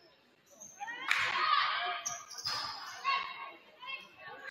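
A crowd of spectators cheers and talks in an echoing gym.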